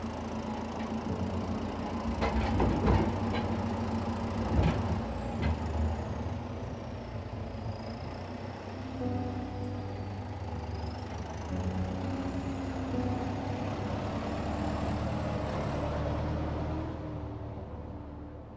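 A tractor engine idles and rumbles nearby.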